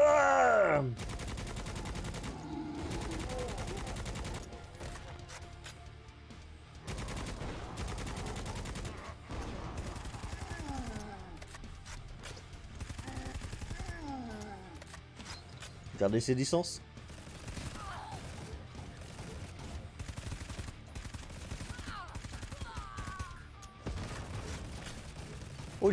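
Gunfire rattles in rapid bursts.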